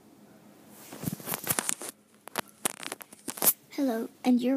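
A small plastic toy is set down with soft knocks and rustles.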